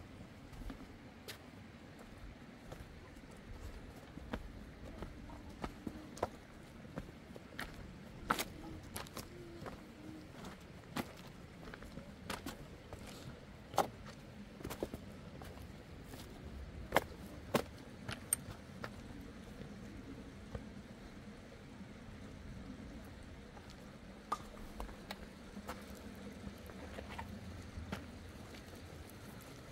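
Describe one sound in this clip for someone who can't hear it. Footsteps crunch on loose rocks and gravel.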